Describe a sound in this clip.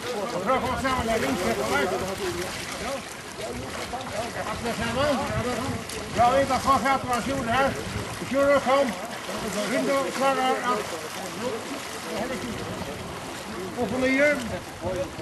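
Several men talk and call out to each other nearby, outdoors.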